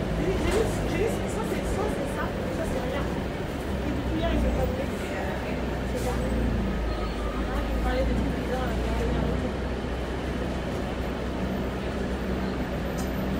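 Loose parts rattle and creak inside a moving bus.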